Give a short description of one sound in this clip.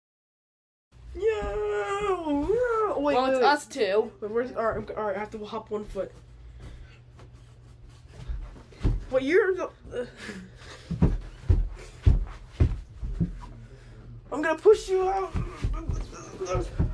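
Two teenage boys talk and laugh with animation close by.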